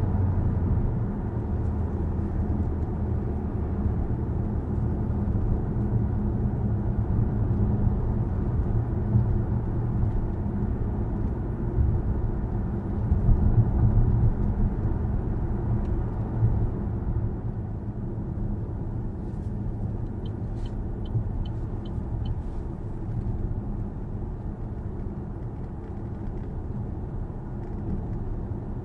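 A car's tyres and engine rumble steadily from inside the cabin while driving.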